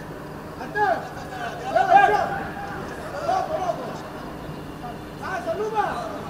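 Men talk briefly out in the open.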